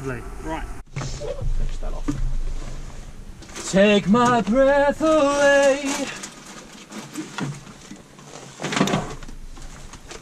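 A second man talks close by, outdoors in light wind.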